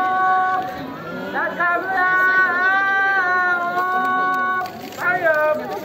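A young woman sings in long, sustained notes outdoors.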